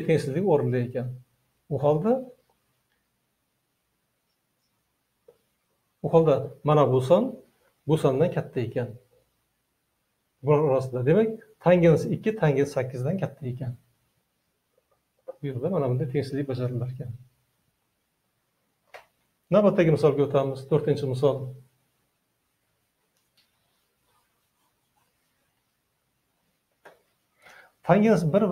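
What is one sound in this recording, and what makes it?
An elderly man speaks calmly in short phrases, close by.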